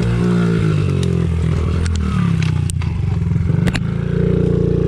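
A dirt bike's suspension knocks and clatters over bumps.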